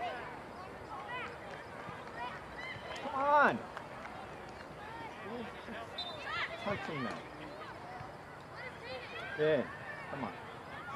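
A small crowd of spectators shouts and calls out at a distance outdoors.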